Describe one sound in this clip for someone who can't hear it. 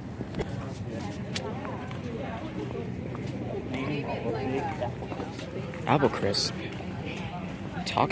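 Footsteps scuff on paving stones.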